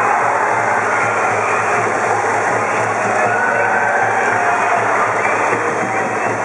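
A brass band plays loudly in the stands.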